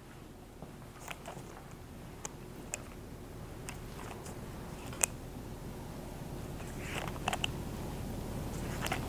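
A plastic bottle squeezes and squirts liquid.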